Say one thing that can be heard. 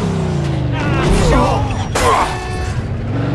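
A car crashes into another car with a loud metal crunch.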